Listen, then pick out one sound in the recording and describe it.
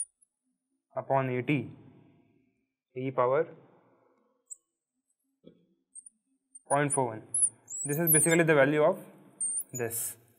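A young man explains calmly into a close microphone, in short bursts.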